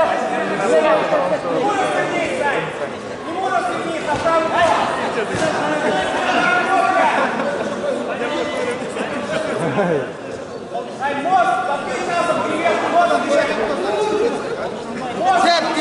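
A crowd shouts and cheers loudly in a large hall.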